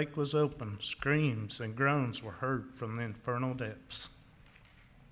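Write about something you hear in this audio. A man speaks into a microphone in an echoing room.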